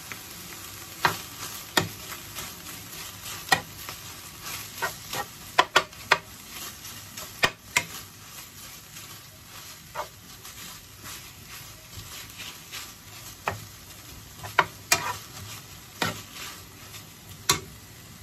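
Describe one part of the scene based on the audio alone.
A spatula scrapes and knocks against a pan.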